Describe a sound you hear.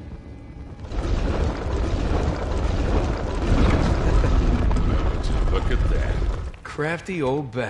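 Heavy stone grinds and rumbles as it slides open.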